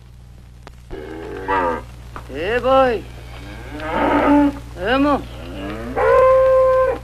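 Cattle low outdoors.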